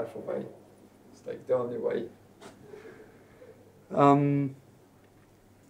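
A man speaks in short bursts nearby.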